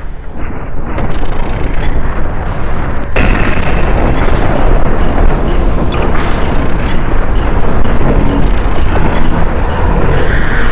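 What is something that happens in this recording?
A magical energy field hums and crackles loudly.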